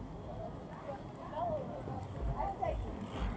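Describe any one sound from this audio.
A young girl and a woman talk nearby.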